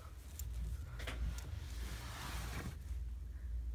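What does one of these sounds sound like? A hand softly strokes a dog's fur.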